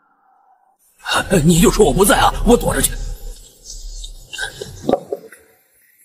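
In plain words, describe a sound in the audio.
A middle-aged man shouts angrily.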